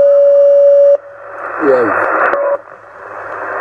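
A radio warbles and squeals briefly as it is tuned.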